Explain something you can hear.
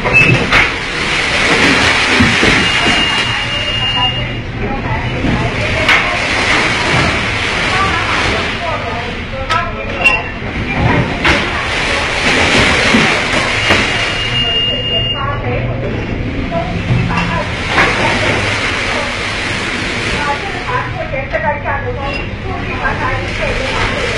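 Heavy waves crash and surge against a ship's hull.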